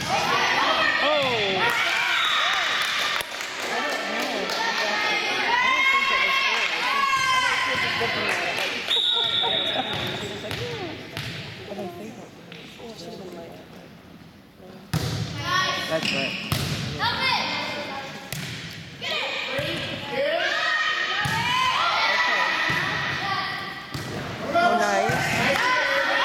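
Young girls shout and call out to each other in a large echoing hall.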